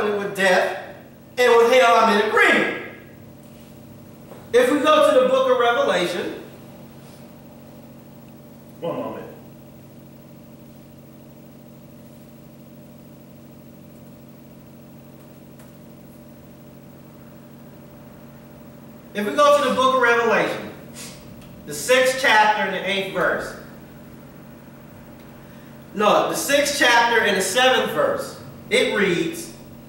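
A man speaks calmly, pausing between phrases.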